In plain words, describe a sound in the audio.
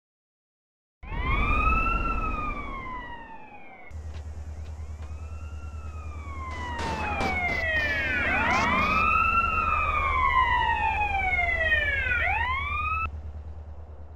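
Police sirens wail, rising and falling, several at once.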